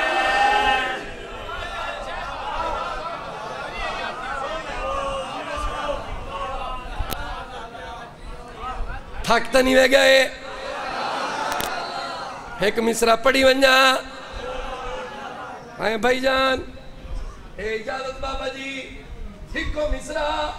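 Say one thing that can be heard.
A man chants loudly and with passion into a microphone over a loudspeaker.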